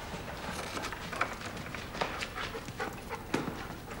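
A fire crackles softly in a room.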